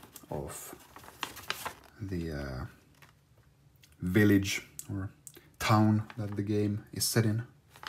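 A large sheet of paper rustles and crinkles as hands handle it.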